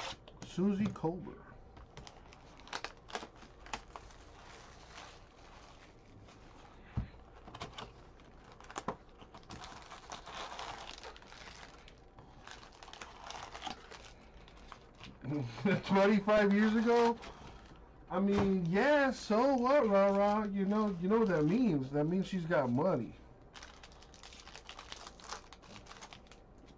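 Foil card packs rustle and crinkle in hands.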